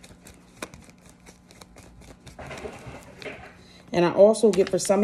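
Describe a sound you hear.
Paper bills flick and rustle between fingers.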